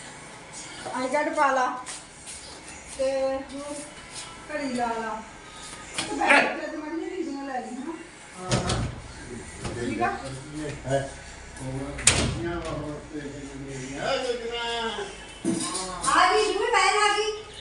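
A middle-aged woman talks calmly, close by.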